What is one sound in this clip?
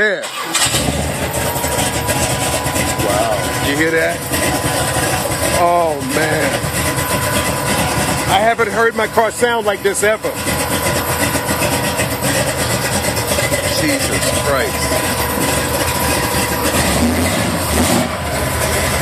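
An engine gives off a steady high whine while it runs.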